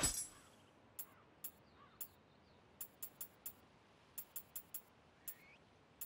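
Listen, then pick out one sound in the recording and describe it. Short game menu clicks tick one after another.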